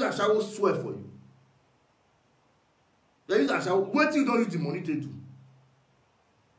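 A man speaks close by in short bursts, with reverberation trailing after his words.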